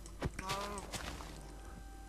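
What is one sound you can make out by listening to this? A cow grunts as it is struck.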